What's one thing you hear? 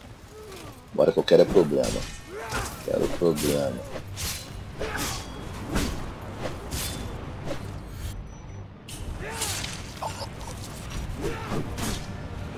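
Blades clash and strike with sharp metallic hits.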